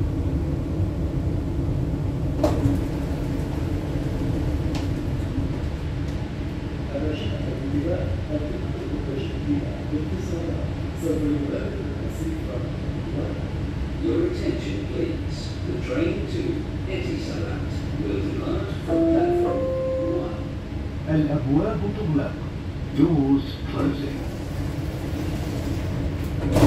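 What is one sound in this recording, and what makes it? A train hums and rumbles steadily along its track.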